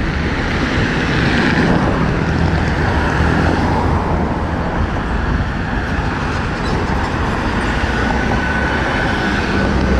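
Car engines hum and tyres roll past on a road outdoors.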